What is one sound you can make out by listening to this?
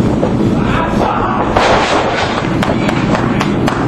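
Bodies slam heavily onto a ring mat.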